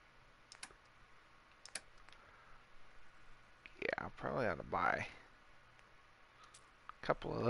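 Soft electronic clicks sound as menu items are selected.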